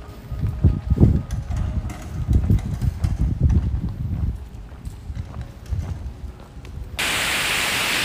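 Wind gusts buffet outdoors in low rumbling bursts.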